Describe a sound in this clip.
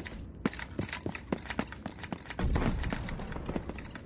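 Footsteps hurry across a stone floor.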